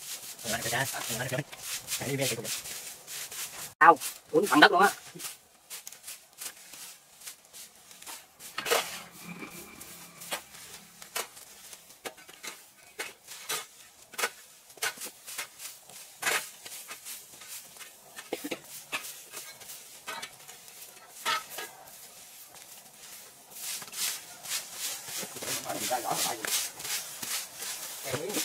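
Straw brooms sweep and rustle over dry leaves and dirt.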